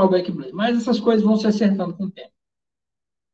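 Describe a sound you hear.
A young man speaks calmly into a microphone, heard as if over an online call.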